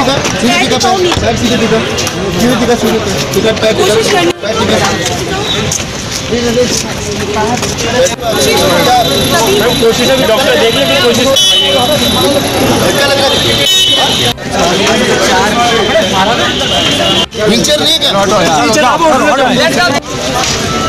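Several men and women talk at once, outdoors, close by.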